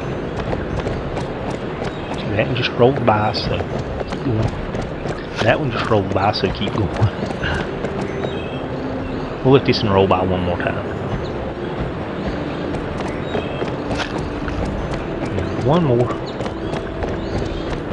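A horse's hooves thud in a quick, steady gallop.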